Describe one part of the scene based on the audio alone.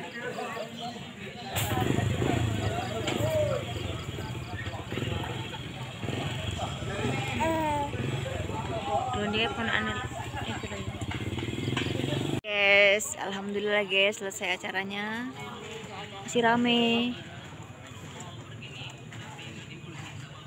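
A crowd of men and women chatter outdoors at a distance.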